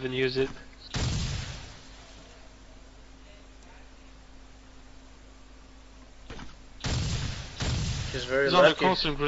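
Explosions boom nearby with a roaring rush.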